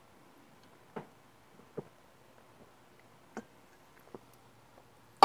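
A young woman gulps a drink from a can.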